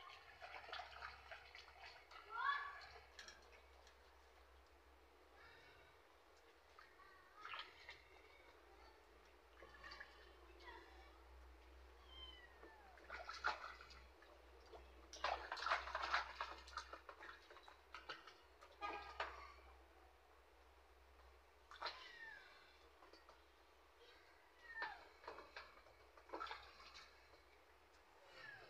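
Water splashes and sloshes in a tub.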